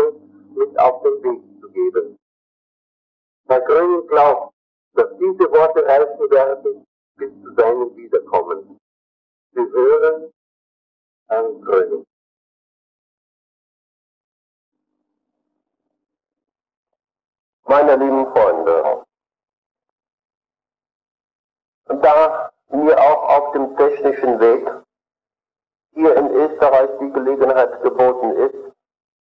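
A man speaks calmly, in short phrases with long pauses.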